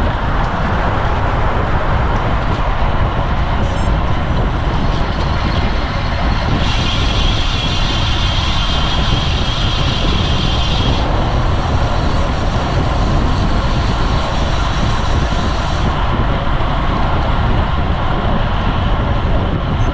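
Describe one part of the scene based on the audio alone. Wind rushes loudly past while cycling outdoors.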